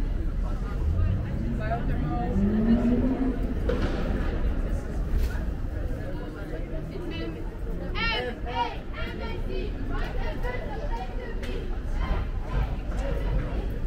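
Young women chat with animation close by as they pass.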